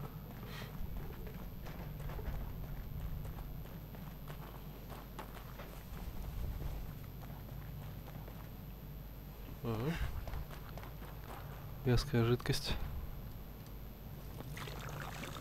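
Footsteps thud steadily on soft ground.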